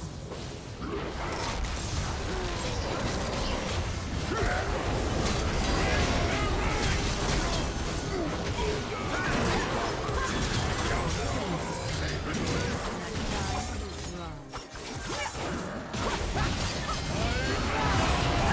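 Game spell effects crackle and burst in a busy fight.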